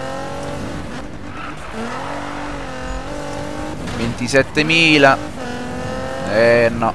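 A car engine revs high and roars, rising and falling.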